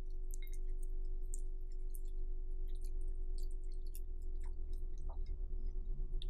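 Milk pours into a bowl of cereal.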